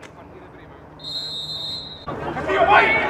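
A referee blows a sharp blast on a pea whistle.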